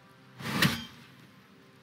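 An axe thuds into a wooden target with a sharp impact.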